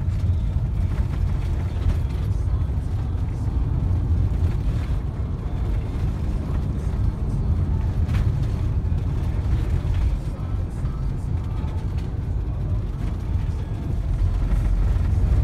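A car engine rumbles low and steady throughout.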